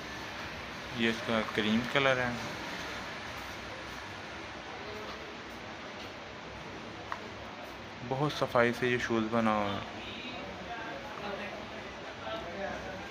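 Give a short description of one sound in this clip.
Soft shoes rustle and tap lightly as a hand turns them over.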